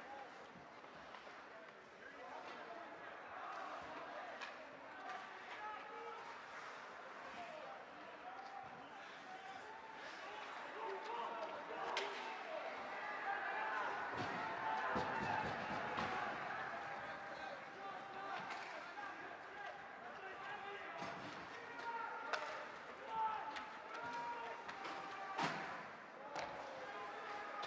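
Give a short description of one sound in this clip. Skates scrape on ice.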